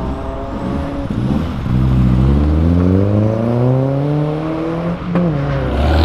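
A car engine revs hard and rises in pitch as the car pulls away.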